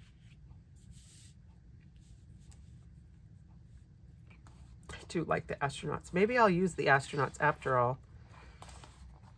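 Sheets of paper rustle softly as they are handled.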